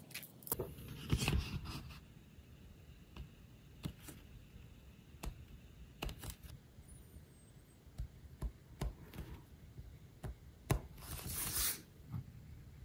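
Paper rustles and crinkles under fingers.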